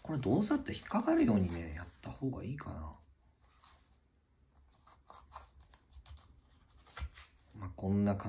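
A knife slides into a leather sheath with a soft rub.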